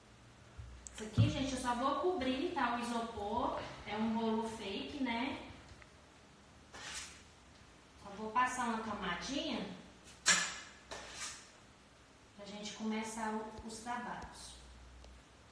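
A woman talks calmly and clearly close by.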